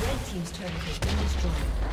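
A tower collapses with a heavy, booming blast.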